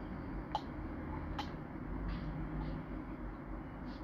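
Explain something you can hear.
A small child sips and swallows from a cup.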